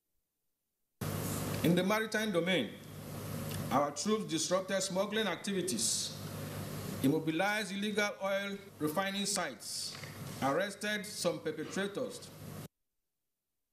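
A man speaks formally into microphones in a slightly echoing room.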